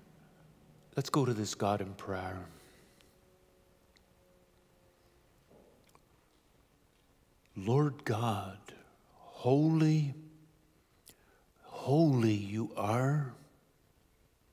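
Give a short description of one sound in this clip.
A man speaks slowly and calmly into a microphone, with pauses, in a room with some echo.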